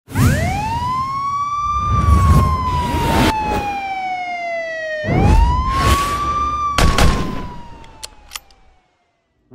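A siren wails in long rising and falling sweeps.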